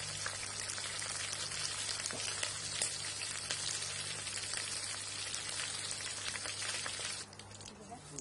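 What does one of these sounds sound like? Liquid bubbles and hisses steadily in a pot.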